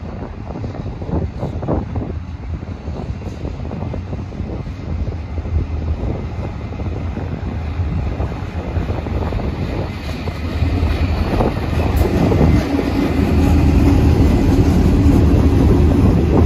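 A diesel locomotive rumbles closer and grows louder.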